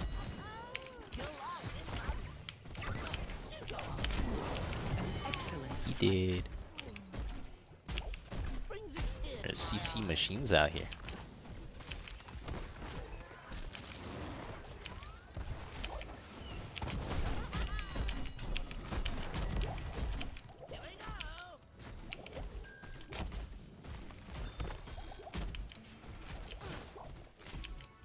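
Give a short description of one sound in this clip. Game spells and attacks crackle and burst in quick succession.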